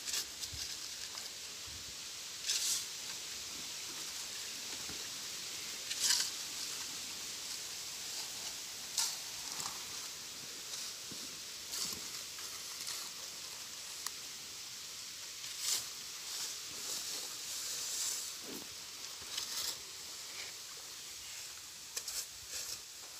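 Shovels scrape and slosh through wet sand and cement.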